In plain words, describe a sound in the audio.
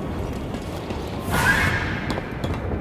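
Boots clank on a metal walkway.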